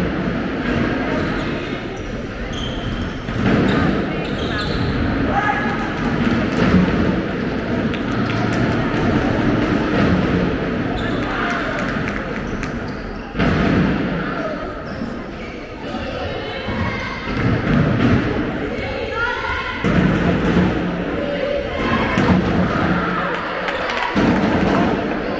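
Spectators murmur and call out in a large echoing hall.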